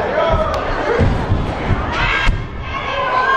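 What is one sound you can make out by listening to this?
A wrestler's body slams hard onto the ring mat with a heavy thud.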